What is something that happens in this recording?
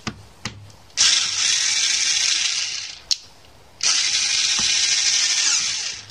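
An electric screwdriver whirs in short bursts, driving a screw.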